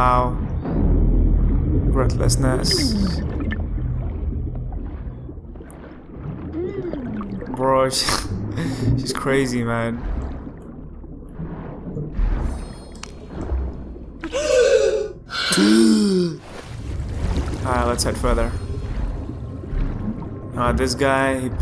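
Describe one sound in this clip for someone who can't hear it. Water swirls and rumbles, muffled as if heard underwater.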